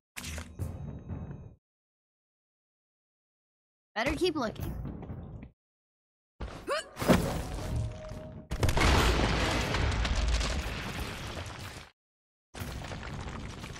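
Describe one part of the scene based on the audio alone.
Footsteps scuff and thud on rock.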